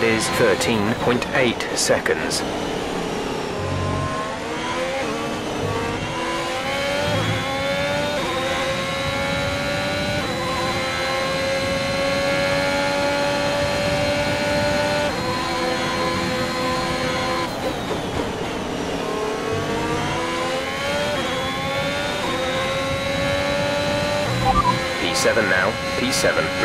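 A racing car engine revs high, drops in pitch on each gear change and climbs again.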